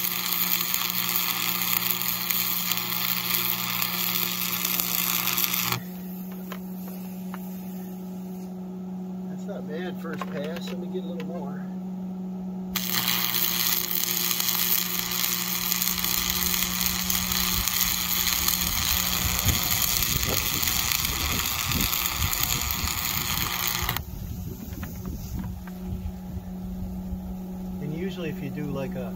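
A welding machine hums steadily.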